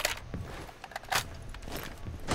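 A rifle magazine clicks as a gun is reloaded.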